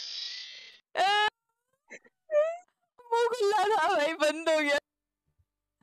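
Young men laugh loudly.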